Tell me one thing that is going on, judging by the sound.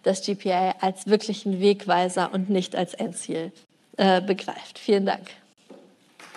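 A woman speaks warmly into a microphone.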